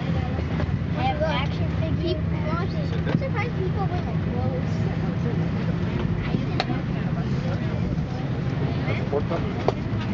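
Men and women chatter in low voices nearby.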